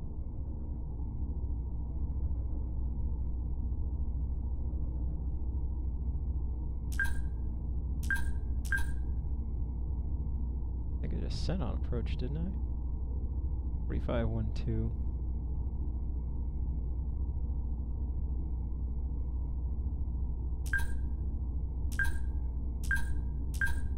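A spacecraft's engine hums low and steady.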